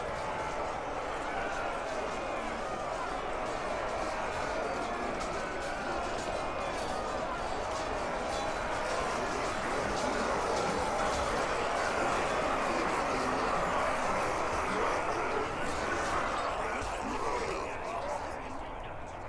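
Many weapons clash and clang in a large battle.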